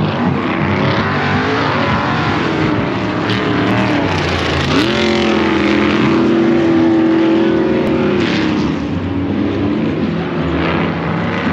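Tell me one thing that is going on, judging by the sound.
Vehicle engines rumble and rev in the distance across open ground.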